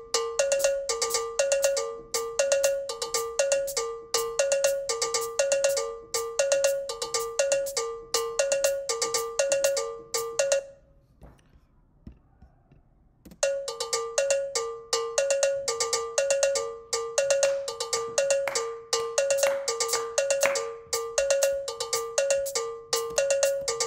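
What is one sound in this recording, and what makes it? Bright keyboard notes play in a quick, repeating pattern, then pause briefly.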